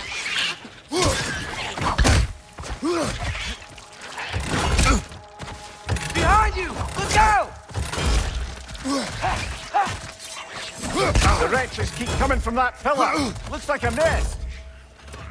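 A heavy axe strikes with loud thuds.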